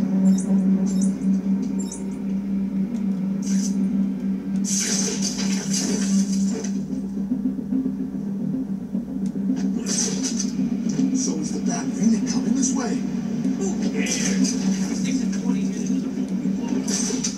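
Video game music and sound effects play through a television speaker.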